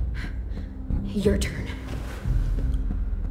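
A young woman speaks quietly.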